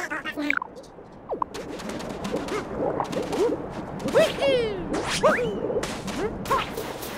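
Bright video game music plays with chirpy, bouncy sound effects.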